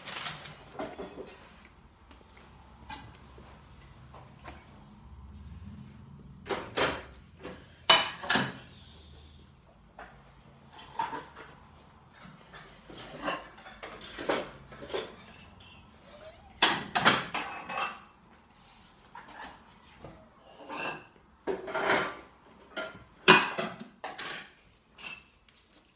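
Dishes and plates clatter and clink.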